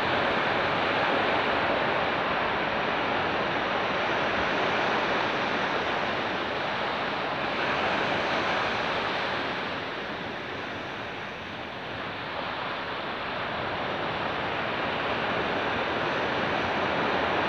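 Waves break and wash up onto a beach in a steady roar.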